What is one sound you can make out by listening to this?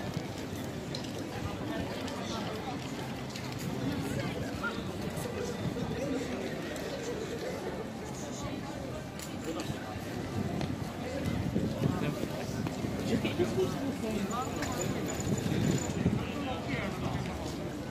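A crowd of people murmurs in the distance outdoors.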